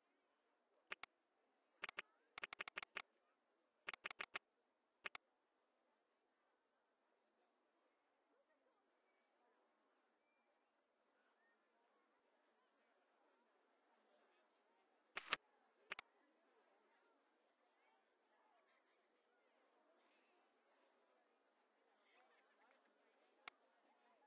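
Short game interface clicks sound in quick bursts.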